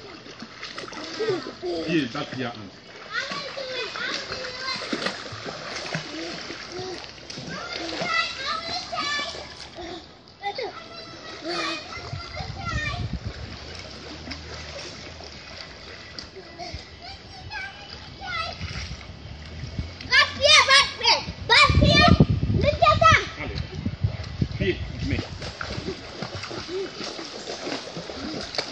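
Water splashes as children swim and kick in a pool.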